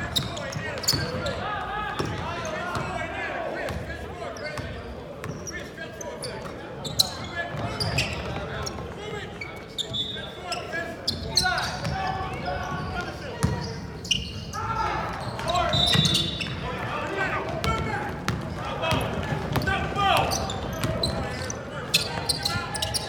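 Sneakers squeak sharply on the court.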